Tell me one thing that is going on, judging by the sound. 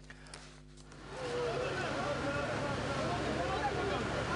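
A crowd of men shout and call out outdoors.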